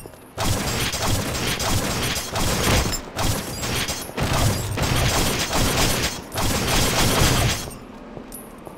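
Wooden crates splinter and crash apart under heavy blows.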